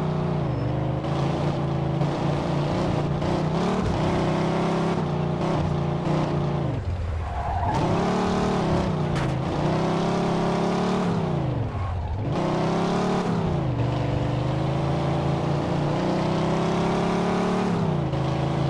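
A car engine roars loudly, revving up and dropping back as it shifts gears.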